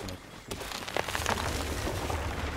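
A tree falls with a rustling crash.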